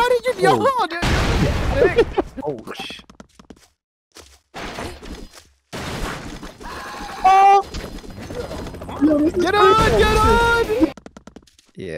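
Gunfire and explosions rattle in a video game.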